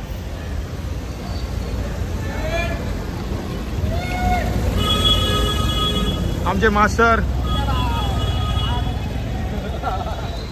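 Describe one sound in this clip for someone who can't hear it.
A crowd of men chatters outdoors.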